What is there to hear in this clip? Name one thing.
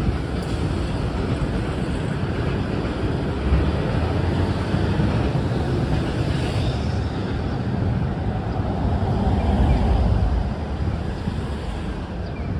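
City traffic rumbles steadily nearby, outdoors.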